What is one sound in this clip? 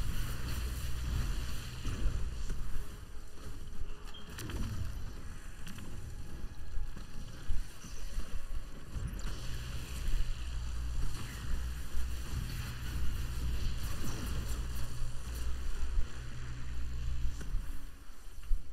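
Energy blasts burst and crackle loudly.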